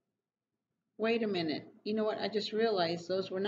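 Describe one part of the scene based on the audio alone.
A woman speaks calmly and close up, in a clear, expressive voice.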